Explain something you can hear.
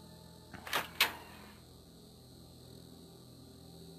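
A heavy wooden door creaks slowly open.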